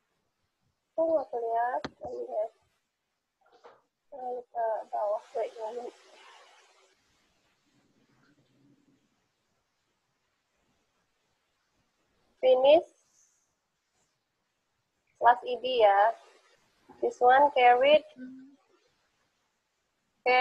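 A young woman speaks calmly through an online call, with pauses.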